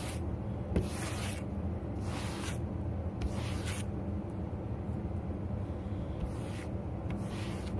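A stiff brush sweeps in quick, scratchy strokes very close by.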